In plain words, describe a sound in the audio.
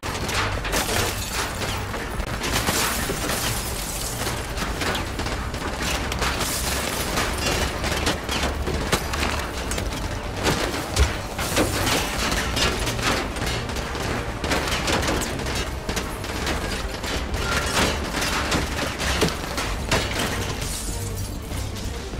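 Gunshots ring out repeatedly.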